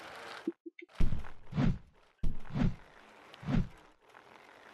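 A body thuds heavily against hard ground several times.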